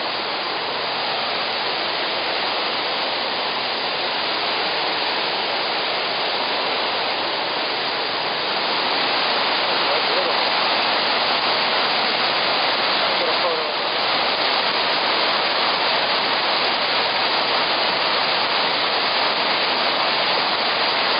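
A waterfall roars and rushes loudly nearby.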